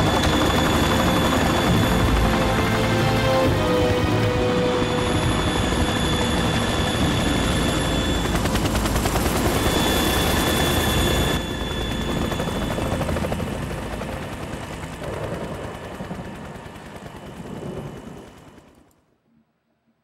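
A helicopter's rotors thump and roar loudly.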